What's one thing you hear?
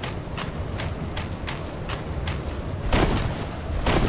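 A knight's armour clanks as he rolls on the ground.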